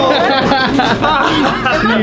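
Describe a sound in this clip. A young man laughs heartily close by.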